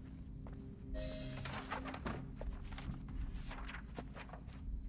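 A wooden lid knocks open.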